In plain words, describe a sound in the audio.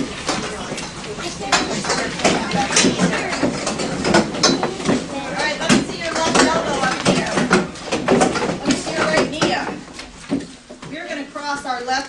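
Children shuffle and move about noisily.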